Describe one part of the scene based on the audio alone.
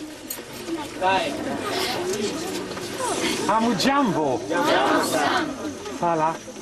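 An older man speaks to a crowd outdoors.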